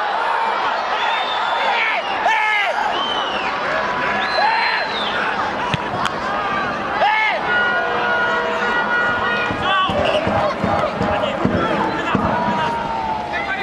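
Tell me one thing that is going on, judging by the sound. A large crowd whistles throughout.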